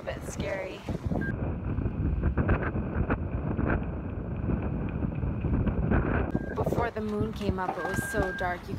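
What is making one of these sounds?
Wind gusts roar against the microphone.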